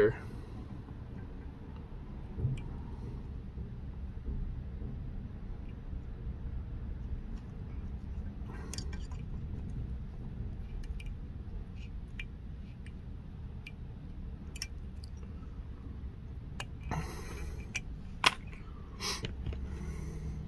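Small metal tools click and rustle faintly.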